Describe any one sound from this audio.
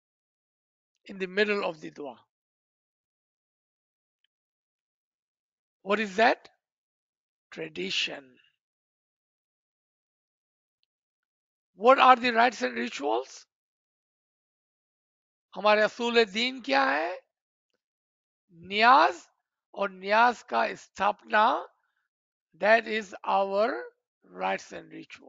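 A man speaks calmly in short phrases through a microphone on an online call.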